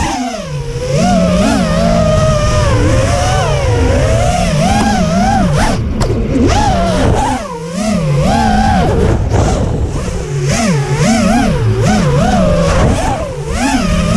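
A small racing drone's motors whine loudly, rising and falling in pitch as it swoops and turns.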